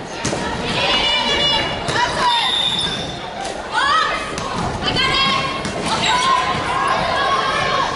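Young women shout and call out to each other.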